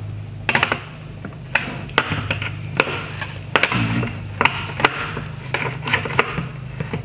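A screwdriver clicks and scrapes against hard plastic.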